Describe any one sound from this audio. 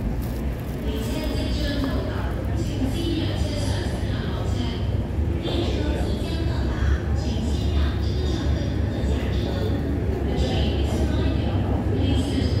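A train rumbles and squeals as it rolls along.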